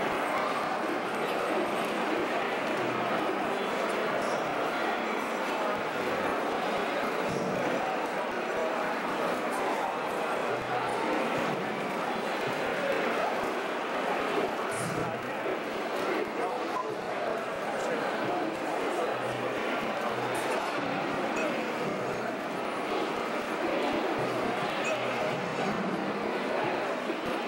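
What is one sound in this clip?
A crowd of people chatters steadily in a busy room.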